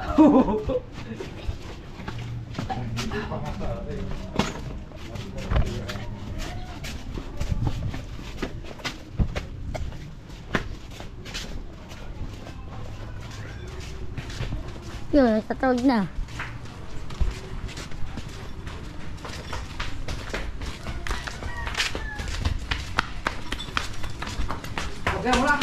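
Footsteps shuffle steadily along a dirt path.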